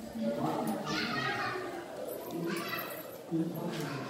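Several women talk over one another close by.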